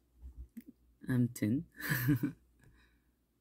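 A young man laughs softly.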